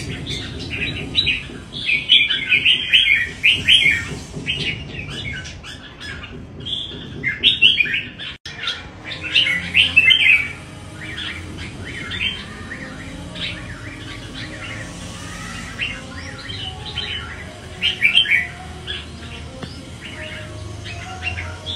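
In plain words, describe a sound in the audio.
A bird sings loud, rapid chirping phrases close by.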